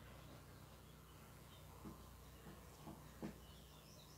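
Cloth rustles as it is folded and handled.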